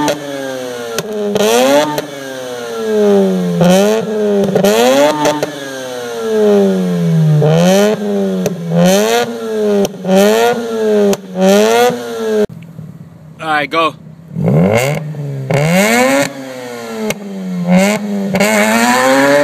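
A sports car engine revs up and down repeatedly, close by.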